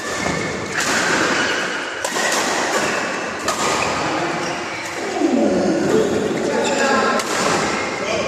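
Shuttlecocks are hit with rackets in sharp pops, echoing in a large hall.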